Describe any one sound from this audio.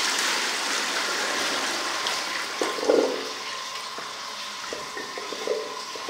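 A toilet flushes with rushing, swirling water.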